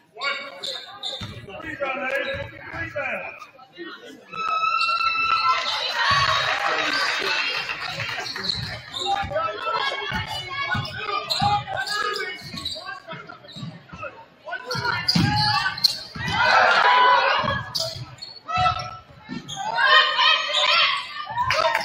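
A crowd in a large echoing gym cheers and shouts.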